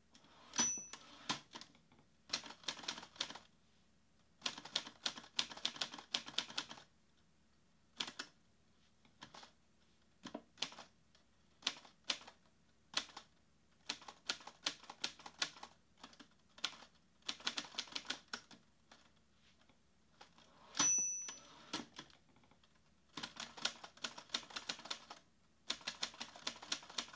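Fingers type quickly on a laptop keyboard in bursts of clicks.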